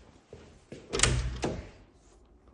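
A door swings open with a knock.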